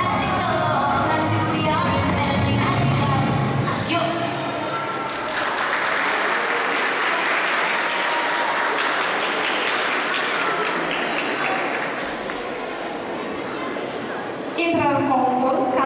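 Music plays over a loudspeaker in a large echoing hall.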